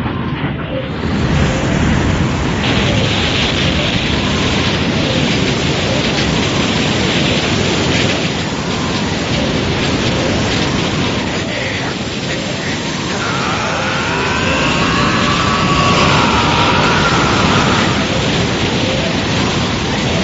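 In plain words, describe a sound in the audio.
Powerful energy blasts roar and clash with a loud, steady rumble.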